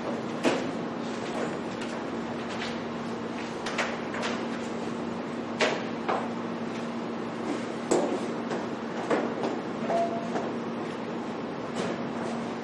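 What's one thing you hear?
Papers rustle and thump onto tables in a large echoing room.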